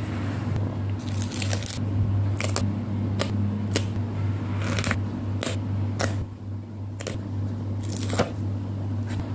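Stickers crackle as they are peeled off a plastic sheet.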